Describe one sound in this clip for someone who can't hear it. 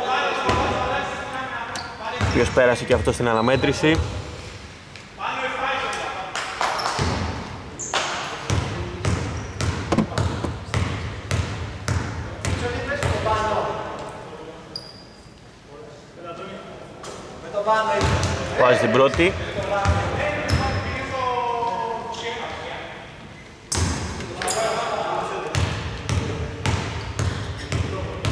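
Men call out to each other across the hall.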